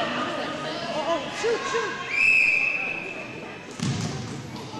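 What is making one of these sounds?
A young girl laughs and talks close by.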